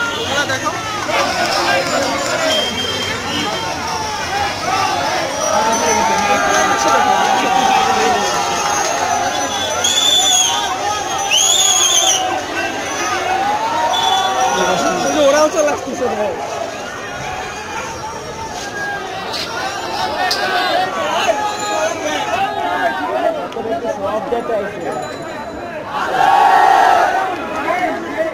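A large crowd of men shouts and chants loudly outdoors.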